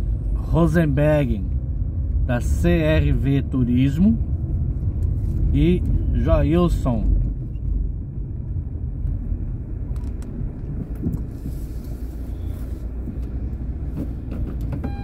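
A car engine hums low and steady, heard from inside the car.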